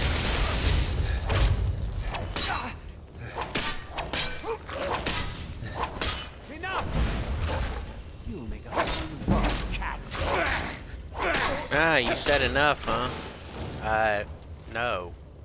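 A man shouts and grunts angrily close by.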